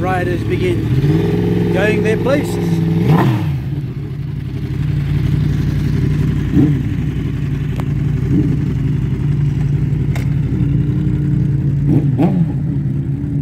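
A motorcycle engine revs up sharply a few times.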